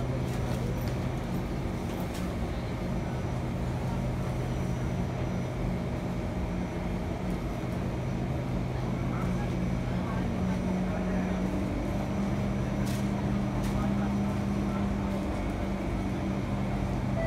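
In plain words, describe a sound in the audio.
An electric metro train hums steadily while standing at a platform.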